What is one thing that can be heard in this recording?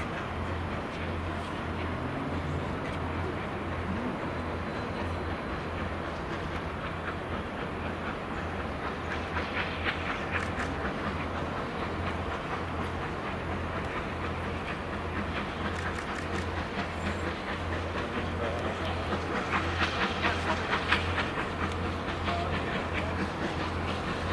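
A steam locomotive chuffs in a steady rhythm as it slowly approaches.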